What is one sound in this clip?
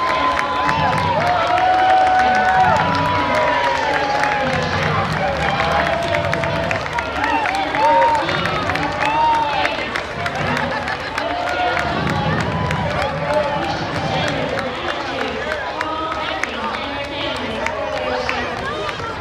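A large outdoor crowd cheers and calls out.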